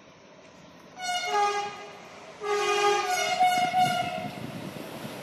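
A train horn sounds twice as a locomotive approaches.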